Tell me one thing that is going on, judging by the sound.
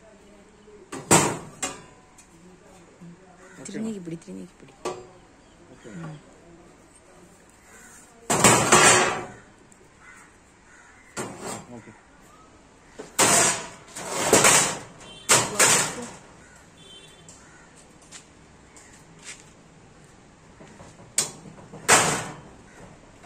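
Sheet metal rattles and clangs as it is handled.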